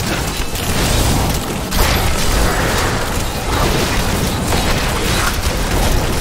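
Game weapons clash and slash in a busy fight.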